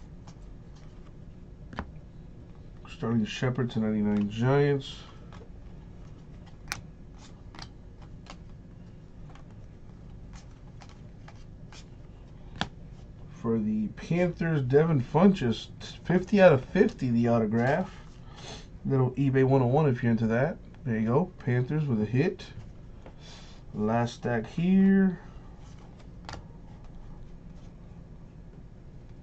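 Trading cards rustle and flick softly between fingers.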